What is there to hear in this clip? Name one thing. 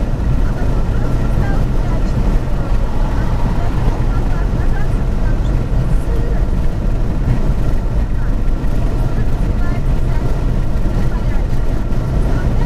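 A car engine hums steadily from inside while driving at speed.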